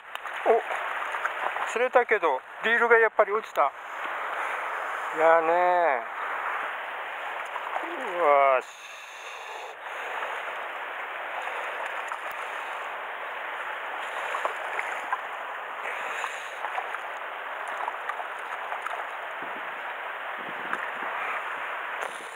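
A shallow stream ripples and gurgles steadily over stones.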